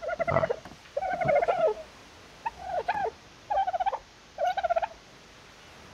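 Large birds cluck and squawk in short bursts, close by.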